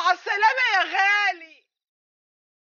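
An older woman speaks with strong emotion, close by.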